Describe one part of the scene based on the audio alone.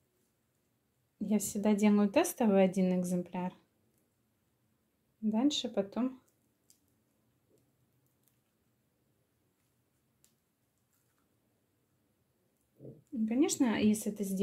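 Orange peel tears and crackles softly under fingers.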